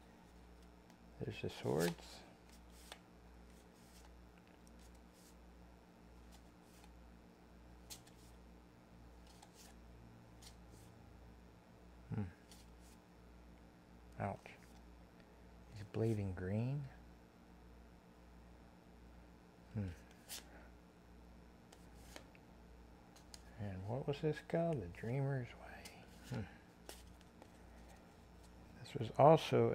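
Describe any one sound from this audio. Playing cards slide and rustle softly between hands.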